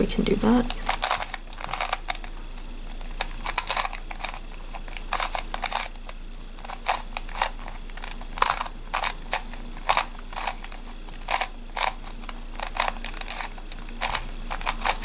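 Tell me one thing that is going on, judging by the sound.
Plastic puzzle pieces click and clack as they are twisted quickly.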